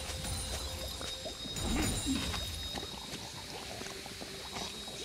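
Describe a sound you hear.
Game spell effects crackle and clash in quick bursts.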